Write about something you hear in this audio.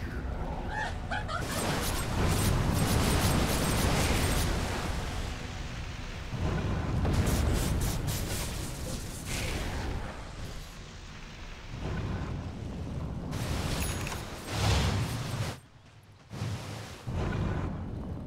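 Magic spells crackle and whoosh in a fight.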